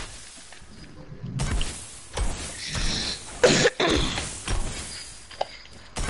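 A pickaxe strikes wood with hard thuds.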